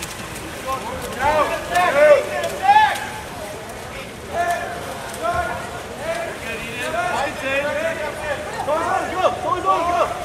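A crowd of spectators shouts and cheers nearby.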